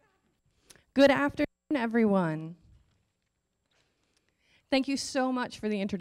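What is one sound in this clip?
An elderly woman speaks with animation into a microphone.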